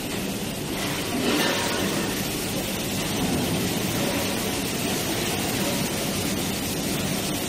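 Metal cylinders rumble as they roll along a roller conveyor.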